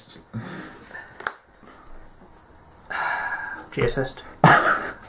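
Playing cards rustle and tap as they are handled on a soft mat.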